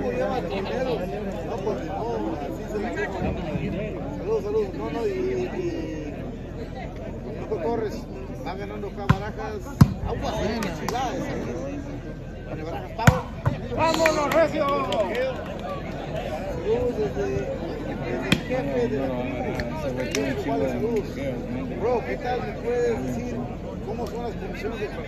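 A crowd of spectators chatters outdoors.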